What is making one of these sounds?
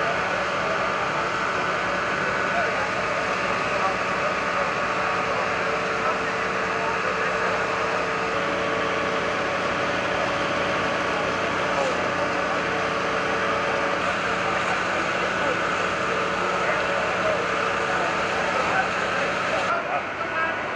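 Fire hoses spray powerful jets of water with a steady rushing hiss.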